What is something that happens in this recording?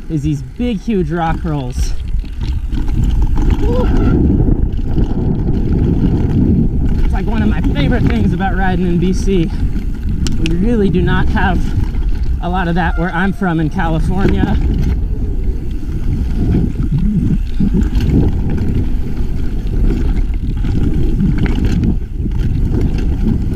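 Bike tyres crunch and roll fast over a dirt trail.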